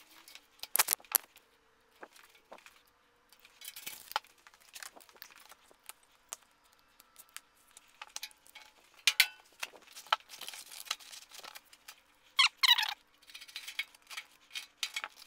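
Plastic sheeting rustles and crinkles as it is handled.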